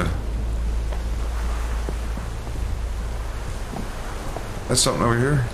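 Footsteps crunch over snow and gravel.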